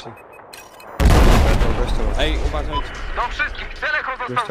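A rifle fires in rapid bursts amid loud battle noise.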